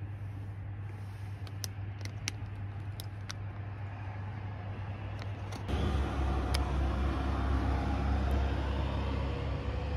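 A plastic wrapper rustles and crinkles.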